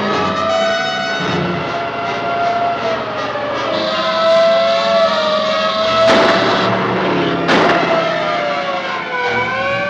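A siren wails and rises and falls.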